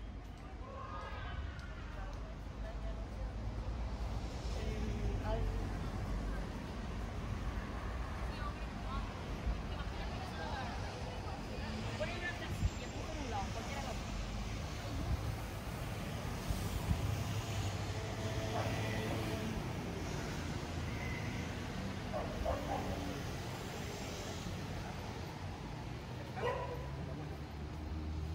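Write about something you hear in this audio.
City traffic rumbles steadily along a street outdoors.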